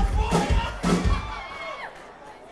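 A rock band plays loud final chords and drum hits in an echoing hall.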